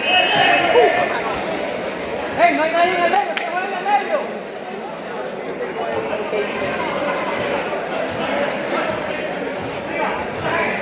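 A crowd chatters and shouts in a large echoing gym.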